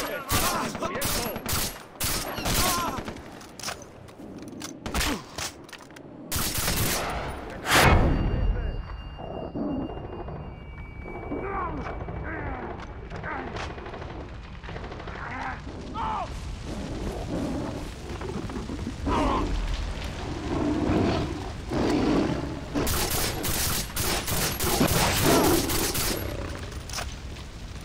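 A rifle fires sharp, loud shots in quick bursts.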